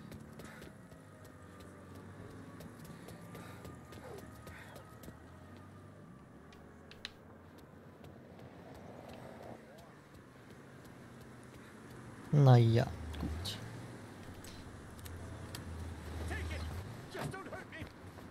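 Footsteps hurry over pavement.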